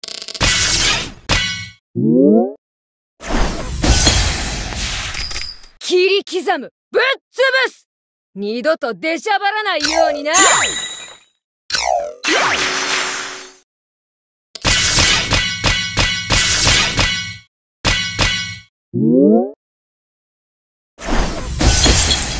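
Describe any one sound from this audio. Bright chimes ring as gems are matched in quick combos.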